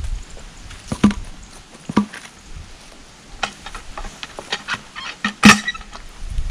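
A heavy tool knocks sharply against a wooden log.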